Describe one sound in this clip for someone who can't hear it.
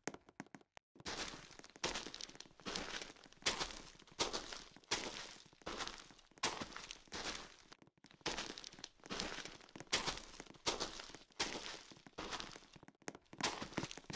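Footsteps rustle through tall grass at an even pace.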